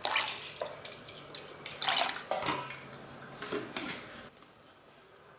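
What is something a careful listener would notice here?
Liquid pours and splashes into a metal bowl.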